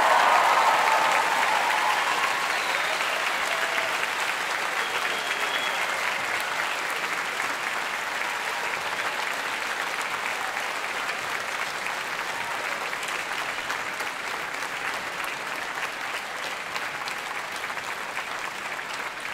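A crowd claps and cheers loudly and steadily.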